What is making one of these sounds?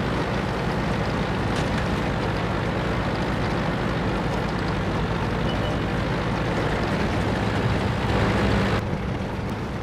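A tank engine rumbles steadily as it drives.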